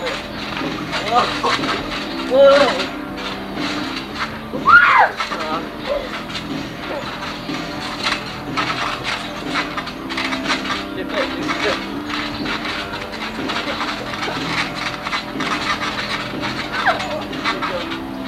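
Young girls squeal and shriek with excitement.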